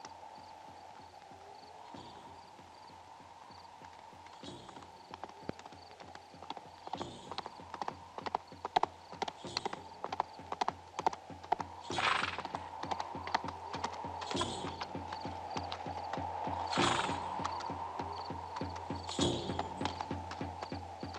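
A horse's hooves thud on dry ground at a walk.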